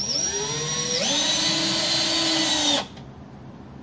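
A cordless drill whirs loudly, its motor speeding up and then cutting off.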